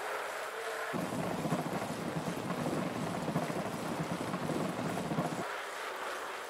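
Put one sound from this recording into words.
Bicycle tyres rumble over the boards of a wooden bridge.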